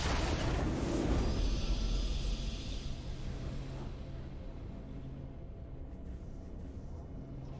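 A triumphant fanfare plays and slowly fades.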